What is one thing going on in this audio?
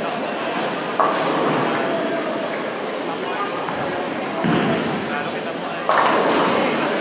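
Bowling pins crash as a ball strikes them.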